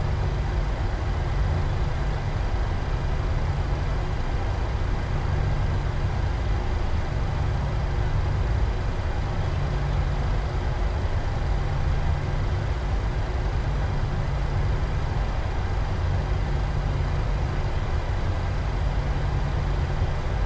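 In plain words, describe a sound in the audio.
Jet engines hum low and steady as an airliner taxis.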